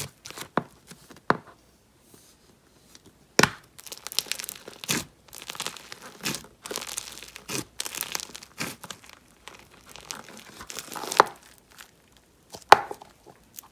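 A plastic tub knocks and taps.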